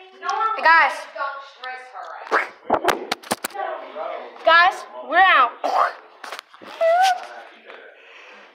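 A young boy talks excitedly close to the microphone.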